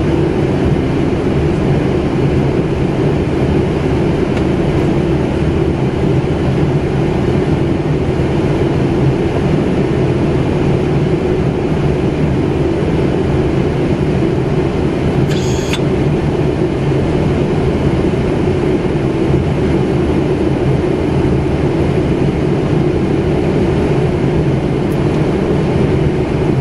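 A jet airliner's engines and airflow roar steadily around the cockpit.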